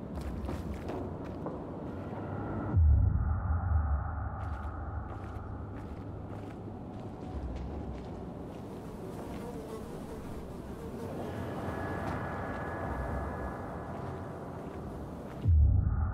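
A low rumble drones.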